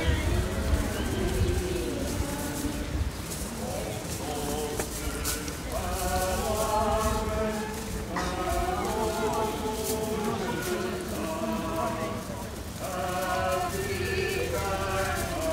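Many footsteps shuffle on stone paving.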